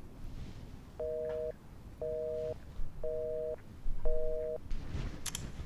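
A phone ringing tone purrs in short repeated bursts.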